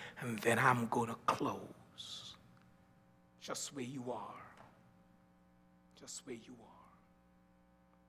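A man preaches forcefully into a microphone in bursts, with long pauses, in a reverberant hall.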